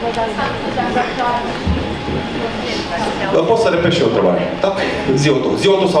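A young woman speaks over a loudspeaker.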